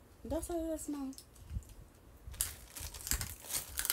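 A young woman crunches on a snack.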